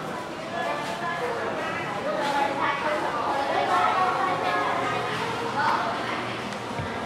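Children talk and chatter nearby.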